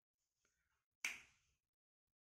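A wall switch clicks.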